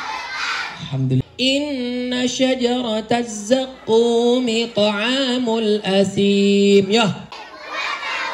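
A young man sings into a microphone through loudspeakers.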